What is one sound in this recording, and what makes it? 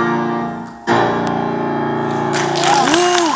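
A piano plays a held chord.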